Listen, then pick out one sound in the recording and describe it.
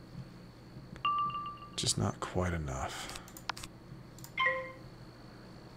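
Short soft chimes ring out from a game menu.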